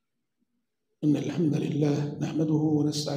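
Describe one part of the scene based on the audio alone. A man speaks with emotion through a microphone.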